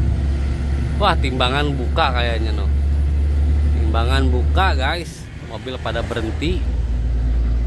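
A young man speaks nearby with animation.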